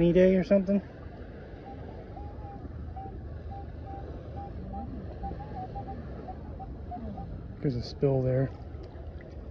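A metal detector gives loud pitched beeps.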